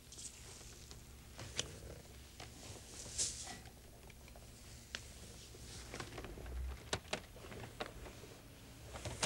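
Sticky slime stretches, squelches and smacks wetly.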